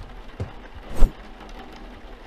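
A cardboard box is set down on a table with a thump.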